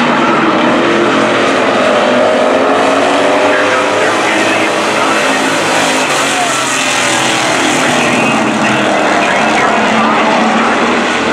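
Race car engines roar loudly around an outdoor track.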